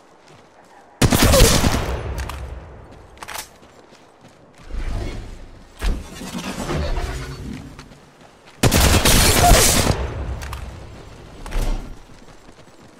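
Gunshots fire in loud, sharp bursts.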